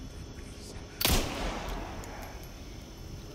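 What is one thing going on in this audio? A gunshot cracks loudly and echoes.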